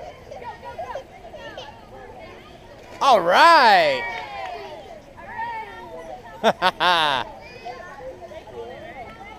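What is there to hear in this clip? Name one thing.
Children shout and call out at a distance outdoors.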